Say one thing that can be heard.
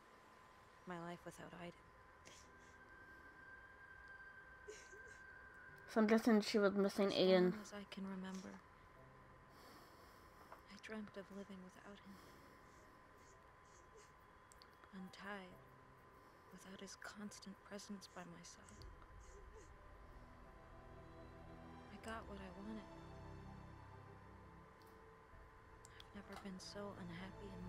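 A young woman speaks quietly and sadly.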